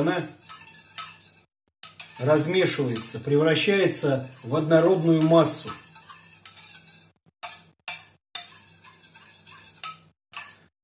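A metal spoon scrapes and clinks against a small tin.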